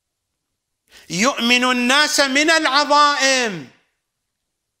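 An elderly man chants in a long, drawn-out melodic voice into a close microphone.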